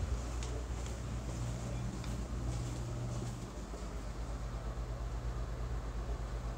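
A microphone rubs and bumps against skin, rumbling and thumping.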